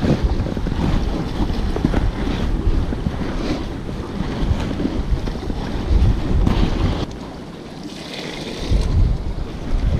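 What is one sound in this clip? Waves wash against rocks nearby.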